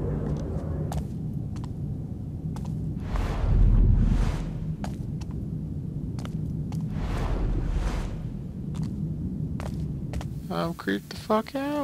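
Footsteps fall on a stone floor in an echoing hall.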